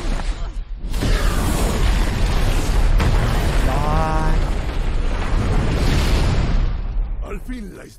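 A large explosion roars with crackling fire.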